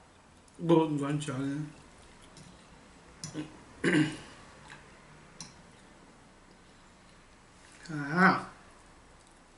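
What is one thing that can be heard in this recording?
A man hums and groans with pleasure.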